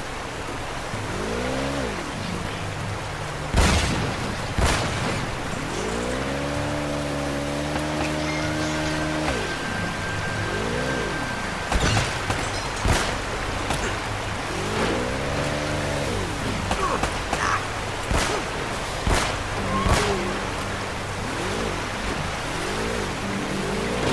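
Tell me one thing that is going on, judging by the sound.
A jet ski engine revs up and down repeatedly.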